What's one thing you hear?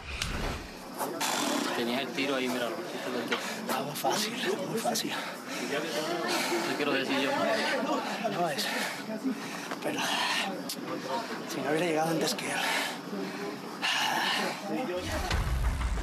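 A man talks with animation among a group.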